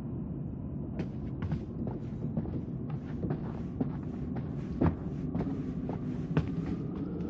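Footsteps tap across a floor and up stairs.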